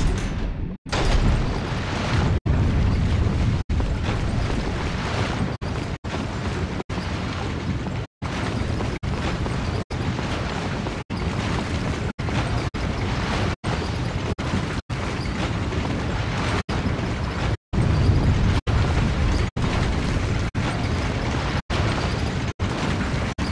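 Fire roars and crackles nearby.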